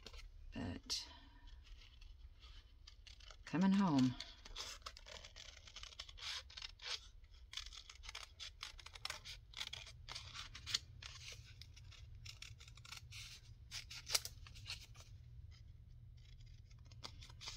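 Scissors snip through card.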